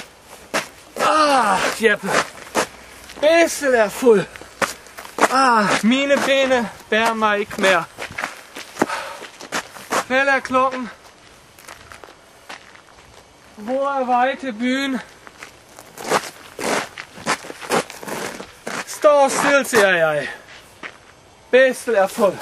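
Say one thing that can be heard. A middle-aged man sings loudly and expressively close by.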